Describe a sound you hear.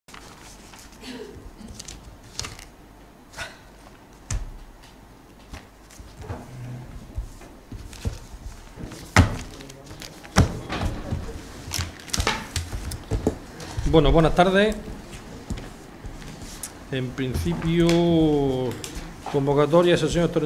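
Papers rustle and knock on a table.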